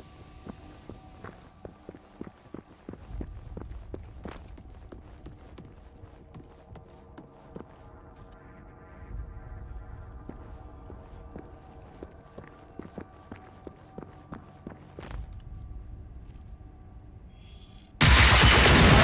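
Footsteps tap steadily on a hard floor, echoing in a tunnel.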